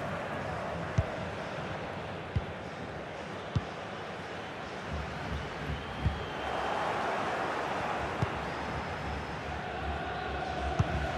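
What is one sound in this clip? A football is kicked with sharp thuds every few seconds.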